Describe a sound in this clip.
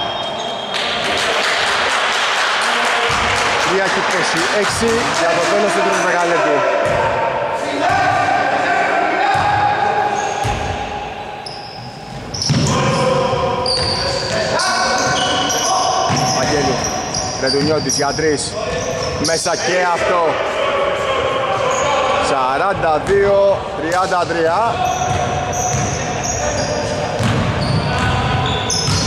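Players shout to each other across the court.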